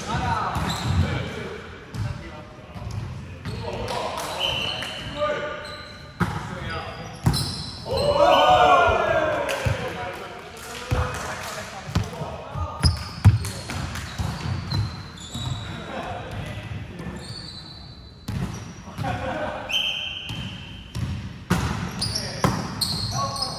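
A volleyball thumps as players hit it, echoing in a large hall.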